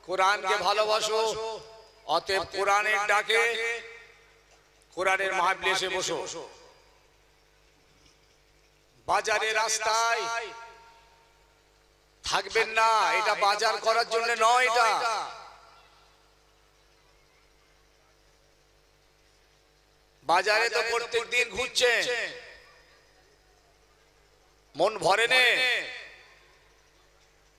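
An elderly man chants in long melodic phrases through a microphone and loudspeakers, pausing between them.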